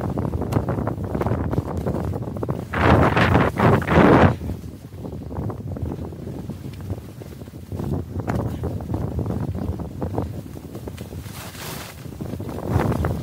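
Wind rushes past close by.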